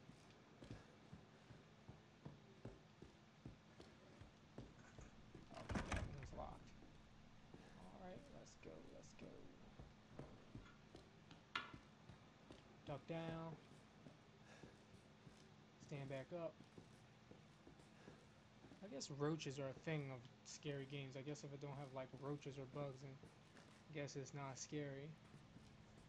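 Footsteps creak slowly across wooden floorboards.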